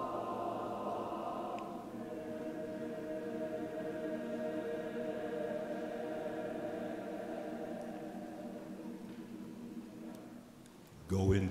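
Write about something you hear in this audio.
A man sings slow, long held notes through a microphone in a large echoing hall.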